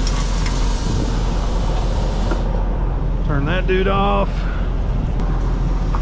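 A metal fuel nozzle clunks as it is hung back on its holder.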